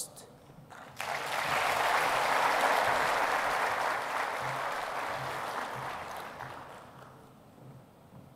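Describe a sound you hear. A large audience applauds in a big hall, then the clapping fades.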